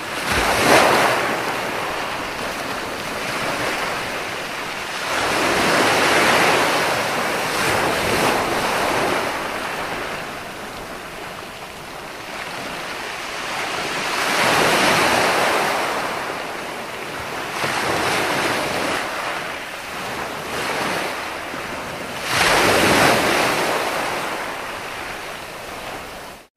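Foamy surf hisses as it spreads over the sand.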